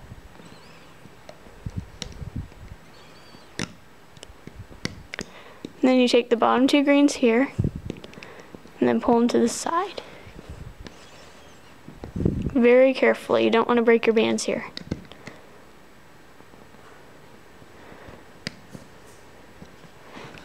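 Small plastic clicks and taps sound as a hook works rubber bands on pegs.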